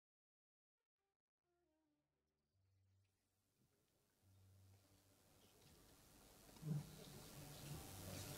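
A flute plays a melody.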